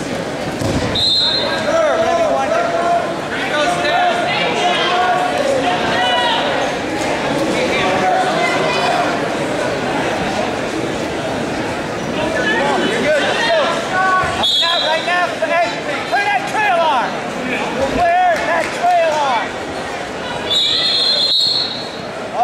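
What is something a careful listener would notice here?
A referee blows a short, shrill whistle several times.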